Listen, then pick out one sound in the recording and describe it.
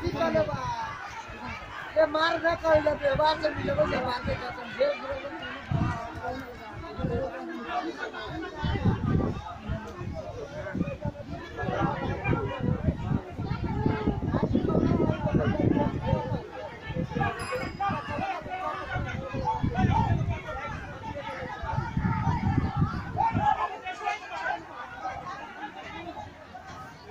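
A crowd of men talks and shouts excitedly nearby.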